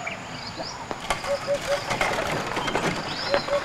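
A wooden ox cart rolls and creaks over a dirt path.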